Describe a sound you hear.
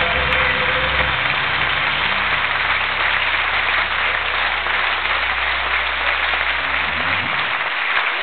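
A band plays a song loudly through speakers, then stops.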